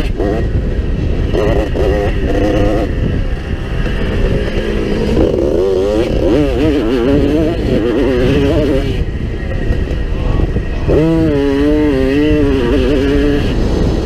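A motorcycle engine revs up and down loudly, close by.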